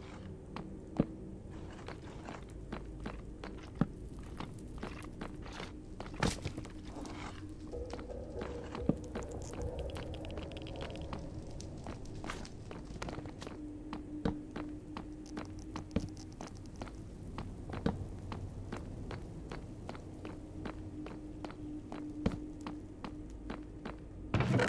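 Footsteps tap steadily on hard stone.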